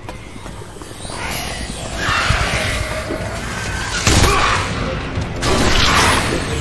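Loud blows and clashes ring out in a fight.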